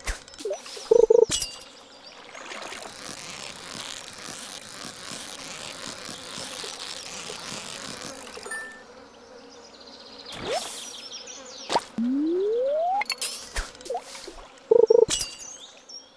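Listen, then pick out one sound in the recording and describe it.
A sharp chime rings as a fish bites.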